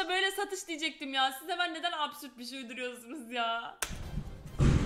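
A young woman talks and laughs close to a microphone.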